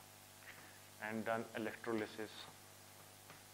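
A man speaks calmly and briefly, close by.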